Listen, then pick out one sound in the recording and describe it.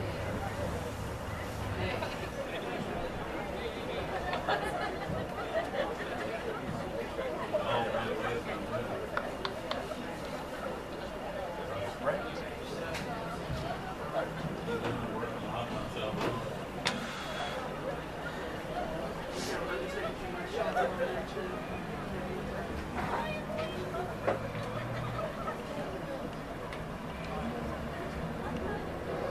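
A crowd of young men chatter and call out outdoors.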